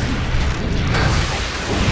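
Magic spells crackle and burst in a game battle.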